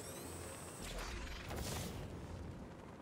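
Wind rushes past in a gliding whoosh.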